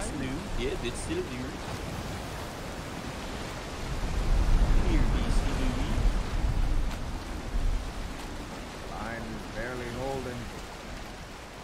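Strong wind roars over rough, crashing waves.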